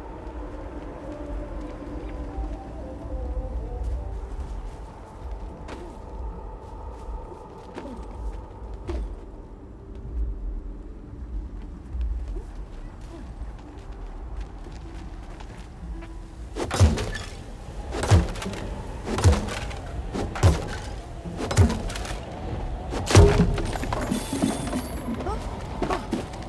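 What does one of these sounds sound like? A game character's footsteps patter on the ground.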